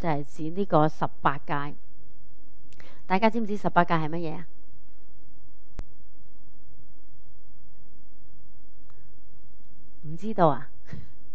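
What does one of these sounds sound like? An elderly woman speaks calmly into a microphone, in short phrases with pauses.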